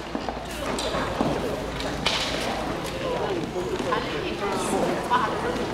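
Several electronic keyboards play a melody together in a large echoing hall.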